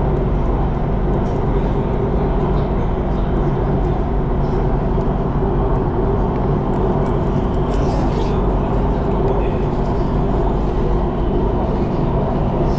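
A train rumbles steadily along its tracks, heard from inside a carriage.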